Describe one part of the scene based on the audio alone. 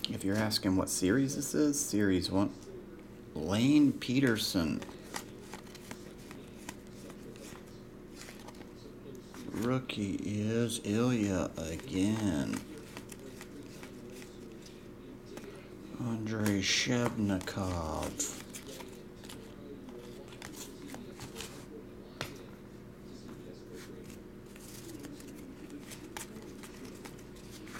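Trading cards rustle and flick softly as they are sorted by hand.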